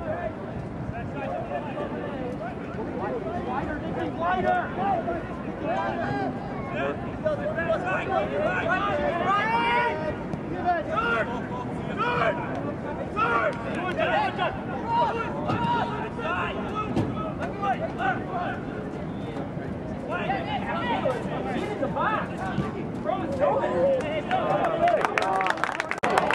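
Young men shout and call to one another across an open outdoor field.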